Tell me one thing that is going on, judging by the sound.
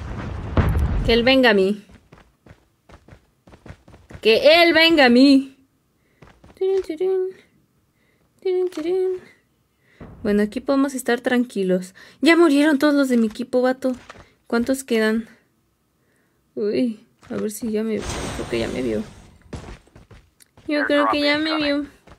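A young woman speaks close to a microphone, with animation.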